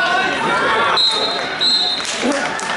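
A referee's whistle blows shrilly twice.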